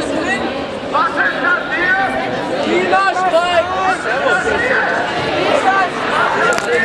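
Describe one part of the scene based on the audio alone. Voices in a crowd shout and call out loudly from nearby.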